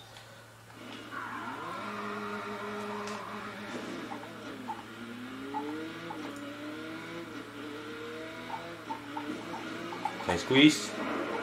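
A racing car engine revs and roars as it speeds up.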